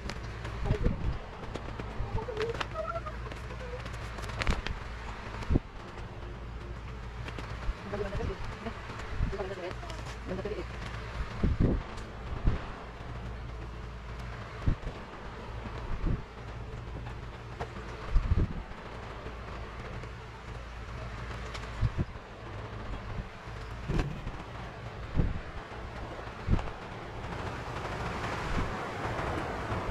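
Plastic sheeting crinkles and rustles.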